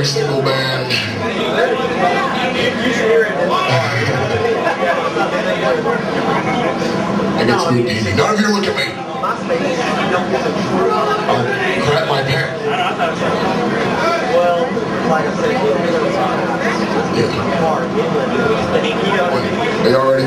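A man growls and shouts into a microphone over the band.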